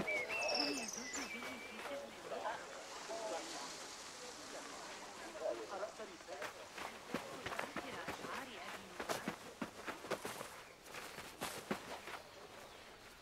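Footsteps thud quickly on sandy ground.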